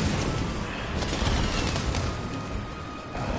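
A fiery blast explodes with a loud burst.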